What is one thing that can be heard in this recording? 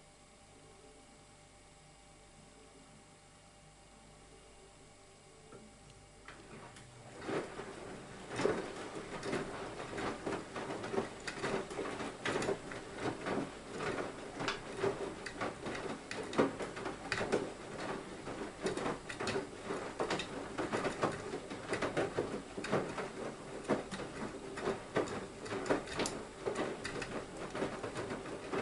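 A washing machine hums quietly.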